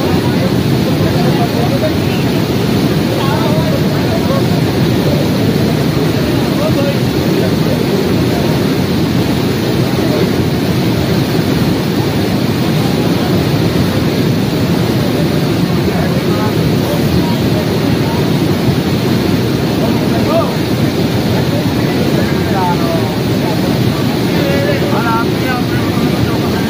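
A swollen river rushes and roars loudly nearby.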